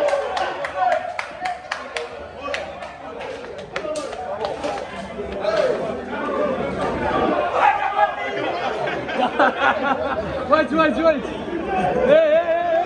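Several men talk and shout excitedly nearby.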